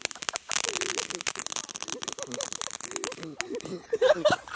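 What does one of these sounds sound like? Fireworks crackle and pop rapidly outdoors.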